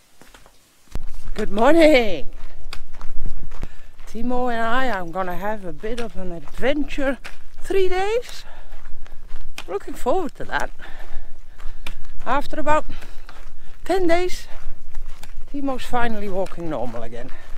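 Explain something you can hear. An elderly woman talks with animation close by, outdoors.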